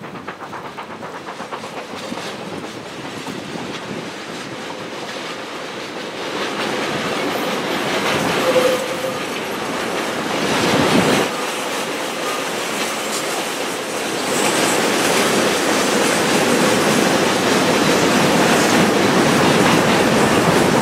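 A steam locomotive chuffs rhythmically as it approaches, growing louder.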